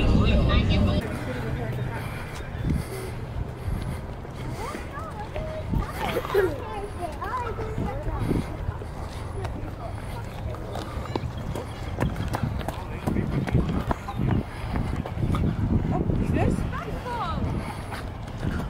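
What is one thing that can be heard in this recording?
Footsteps walk on pavement outdoors.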